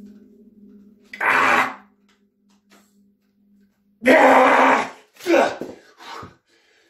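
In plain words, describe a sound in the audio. A middle-aged man grunts and strains with effort.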